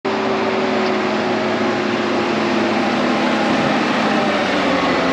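A tractor engine rumbles loudly close by.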